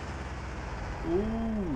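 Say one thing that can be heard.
Truck tyres squeal briefly as the truck swerves.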